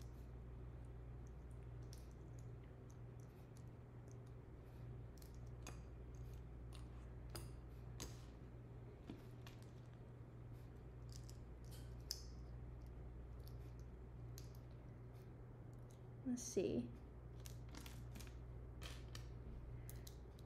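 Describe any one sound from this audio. Small objects click softly in a young woman's hands.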